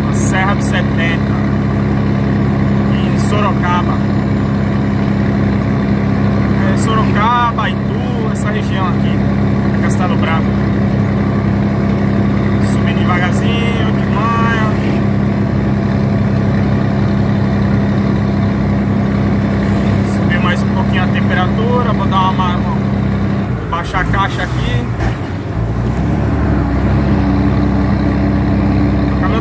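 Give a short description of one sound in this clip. A truck engine hums steadily from inside the cab.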